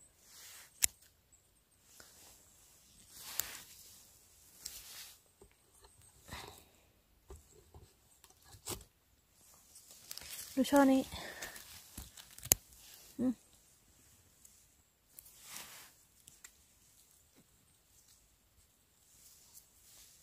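Gloved hands rustle through moss and leaf litter.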